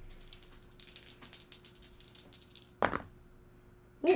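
Dice clatter into a tray.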